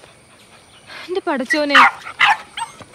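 A puppy yelps and howls.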